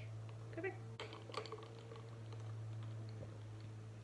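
Ice clinks against a glass as a straw stirs it.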